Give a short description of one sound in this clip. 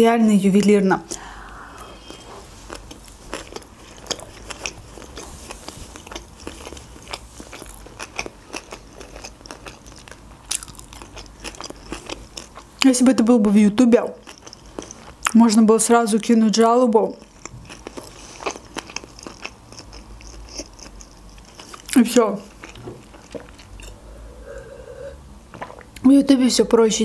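A young woman chews food with wet smacking sounds close to a microphone.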